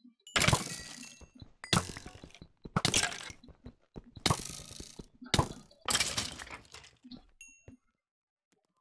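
A sword strikes a skeleton again and again.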